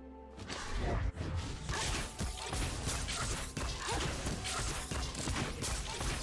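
Game fight effects crackle and clash with booming impacts.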